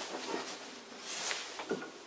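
A hand turns a metal pulley with faint clicks and rattles.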